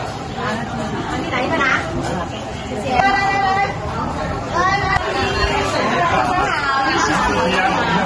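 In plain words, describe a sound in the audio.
A young woman talks cheerfully up close.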